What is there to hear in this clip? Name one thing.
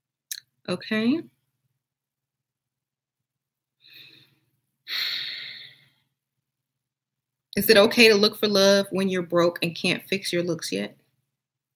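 A woman speaks close to a microphone, calmly and then with emphasis.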